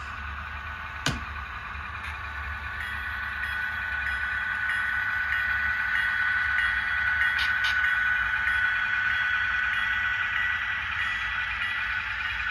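A model train locomotive hums and whines as it rolls along the track, growing louder.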